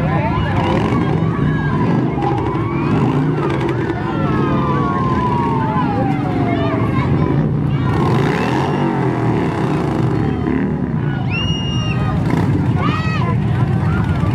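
A crowd of children and adults cheers and shouts outdoors.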